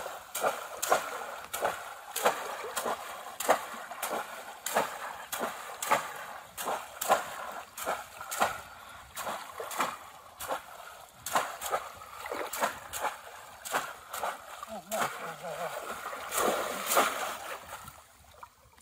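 Water splashes loudly as baskets are plunged in and out of shallow water.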